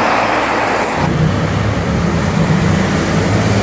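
A small truck rumbles past close by.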